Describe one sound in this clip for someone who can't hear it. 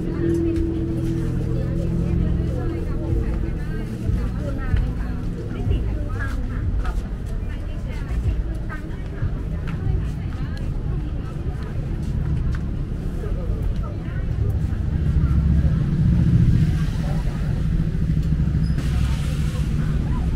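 Footsteps shuffle along pavement.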